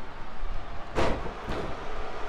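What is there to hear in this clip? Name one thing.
A body slams onto a wrestling ring mat.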